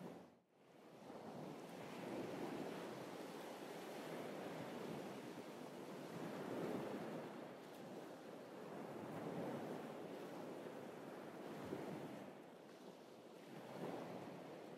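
Small waves lap and wash gently onto a beach.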